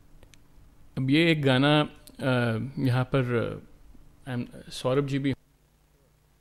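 A man speaks calmly into a microphone, heard over an online call.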